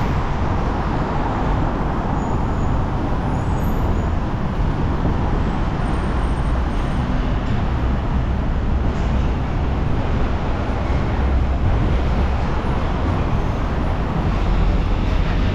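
Traffic rumbles steadily on a busy road below.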